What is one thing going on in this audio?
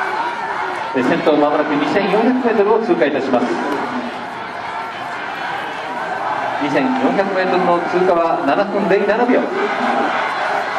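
Nearby spectators shout loud encouragement in bursts.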